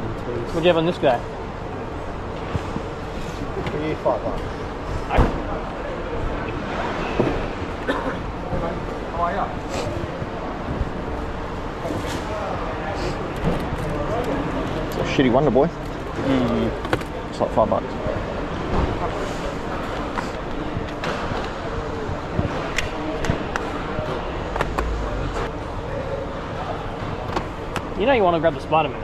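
A crowd of men and women chatters nearby in a large echoing hall.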